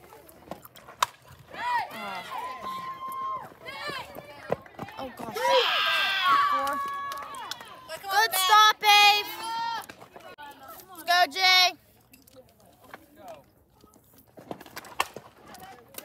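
A softball bat cracks sharply against a ball.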